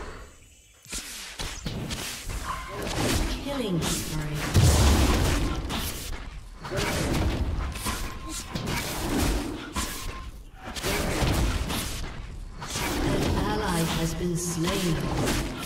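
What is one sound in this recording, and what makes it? Blows and magic effects crash and burst in a fast fight.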